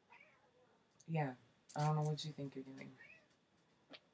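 A woman speaks animatedly close by.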